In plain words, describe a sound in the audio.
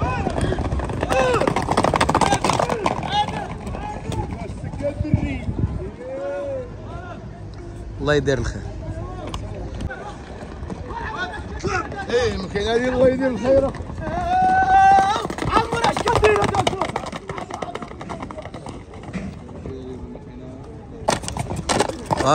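Horse hooves thud on dirt.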